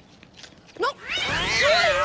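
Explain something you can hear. A boy shouts loudly.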